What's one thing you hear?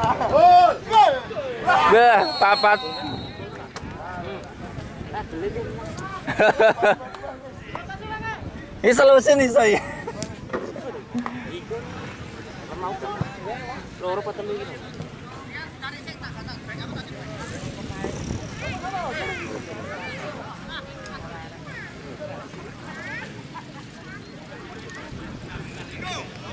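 A crowd of spectators chatters and calls out in the distance outdoors.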